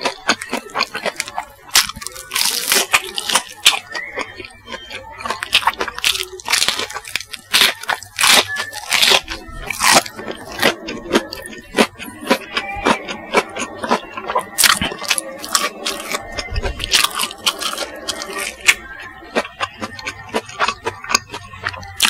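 A man chews loudly and wetly close to a microphone.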